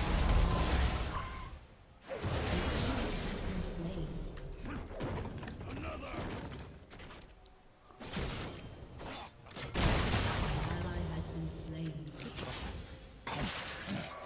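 Magic blasts and weapon strikes clash in quick bursts during a fight.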